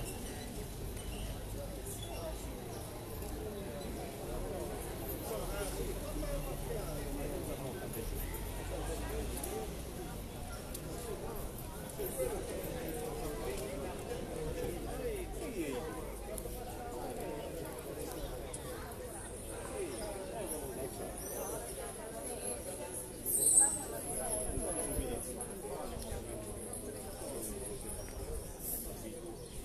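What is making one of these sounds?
Several people chat in the distance outdoors.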